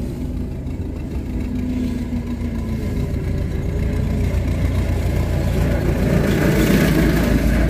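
A tractor engine rumbles close by, growing louder as it passes.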